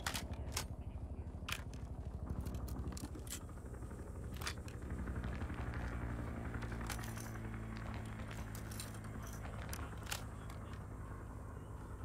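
Metal parts of a gun click and clack during reloading.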